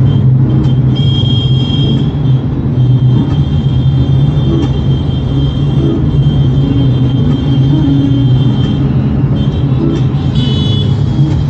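A car engine hums steadily from inside the cabin while driving.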